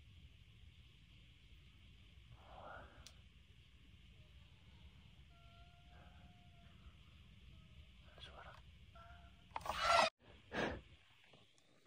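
A young man whispers close by.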